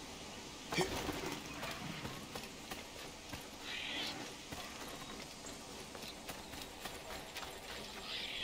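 Footsteps run over dirt and grass.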